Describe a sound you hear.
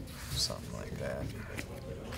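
Playing cards are shuffled by hand.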